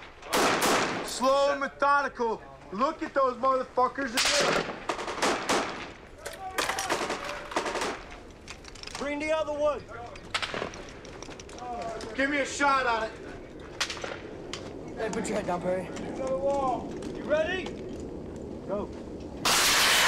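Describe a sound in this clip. Rifles fire in sharp, rapid bursts nearby.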